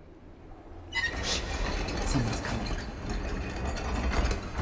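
A large metal crank wheel creaks and grinds as it turns.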